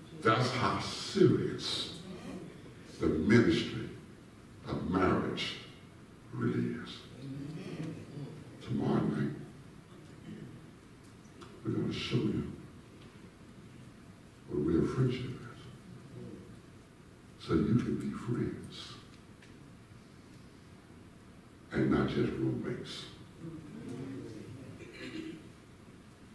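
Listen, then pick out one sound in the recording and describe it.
A man preaches through a microphone in a large echoing hall, in bursts with pauses between.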